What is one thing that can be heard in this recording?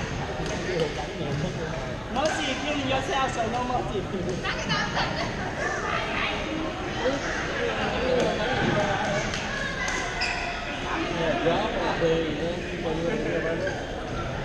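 Shuttlecocks are struck with rackets, with sharp pops echoing in a large hall.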